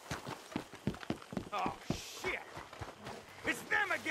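Footsteps thud quickly on wooden boards and dirt.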